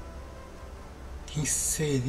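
A brush dabs and strokes softly on a canvas.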